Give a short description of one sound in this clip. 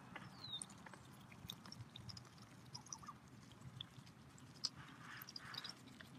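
A goose pecks at the dry ground with soft, quick taps.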